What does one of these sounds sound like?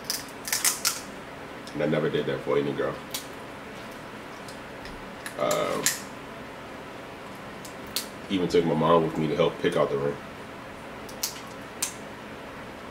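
Crab shells crack and crunch between fingers.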